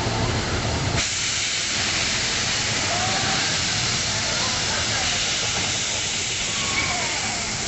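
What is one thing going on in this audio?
Steam hisses loudly from a steam locomotive.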